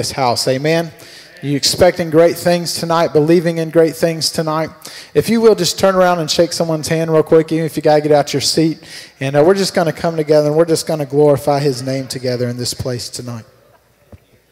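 A man sings into a microphone, amplified in a large hall.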